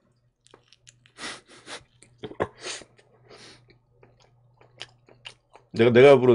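A man chews crunchy food noisily close to a microphone.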